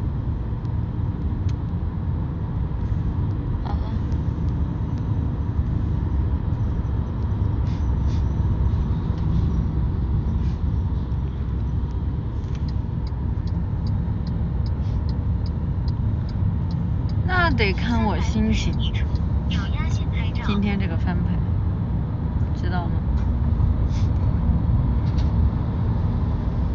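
A car's engine rumbles low and steady from inside the car.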